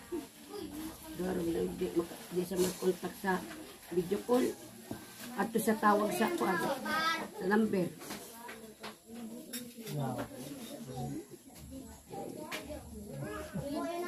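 An elderly woman speaks in a low voice close by.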